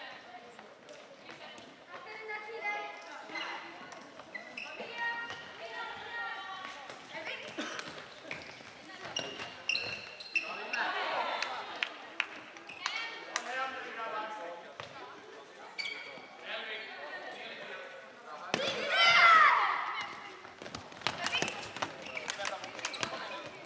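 Plastic sticks clack against a ball and against each other.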